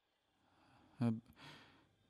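A young man speaks briefly, close by.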